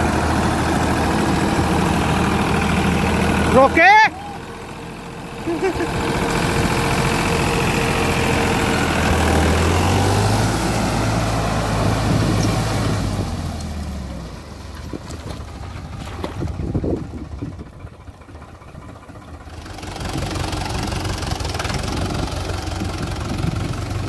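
A tractor engine rumbles and chugs close by.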